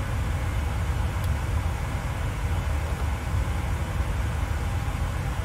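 Jet engines drone steadily in a low rumble heard from inside a cockpit.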